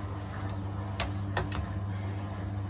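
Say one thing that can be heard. A handheld thermometer clicks a few times.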